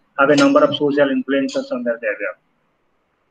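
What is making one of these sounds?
A man speaks close to the microphone, with animation.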